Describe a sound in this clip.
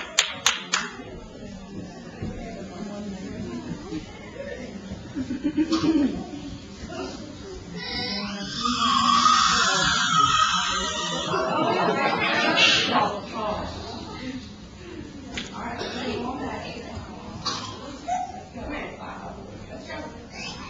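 Young children chatter and talk among themselves.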